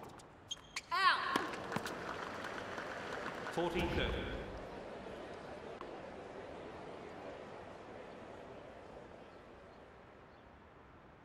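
A crowd applauds in a large arena and slowly fades.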